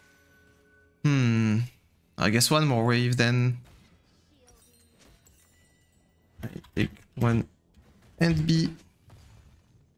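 A young man speaks loudly and with animation into a microphone, in short bursts.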